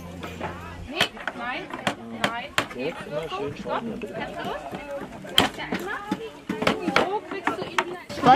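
A hammer knocks on wooden boards.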